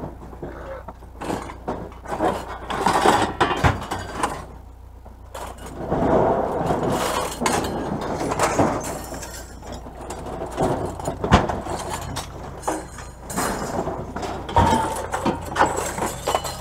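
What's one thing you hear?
Scrap metal clatters and clinks as it is handled and tossed.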